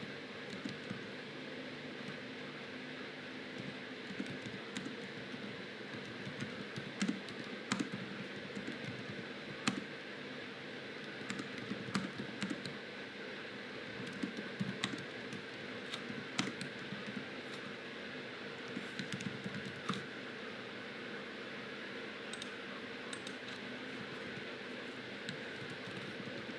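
A man talks quietly and close to a microphone.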